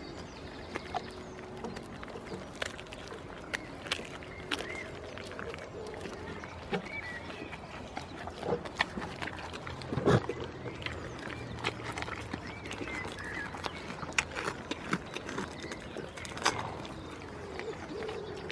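A goat chews and crunches food up close.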